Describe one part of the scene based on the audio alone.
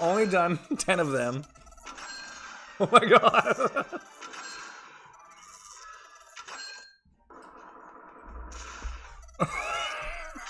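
Slot machine chimes ring and jingle as prizes are counted.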